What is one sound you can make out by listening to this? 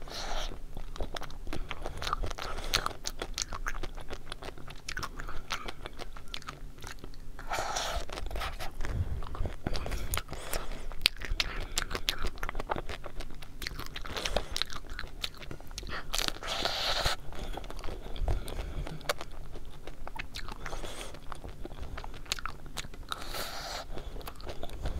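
A young woman chews food close to a microphone.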